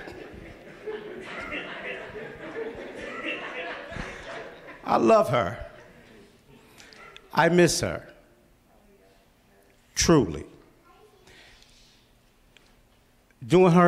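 A man speaks slowly and with feeling into a microphone, heard through a loudspeaker in a hall.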